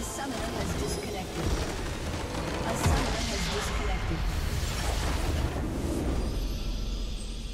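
Magic spells burst and whoosh in a game battle.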